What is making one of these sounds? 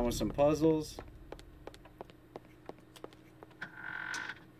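Footsteps run across wooden boards.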